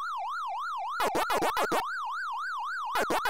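Quick electronic chomping blips sound in short bursts.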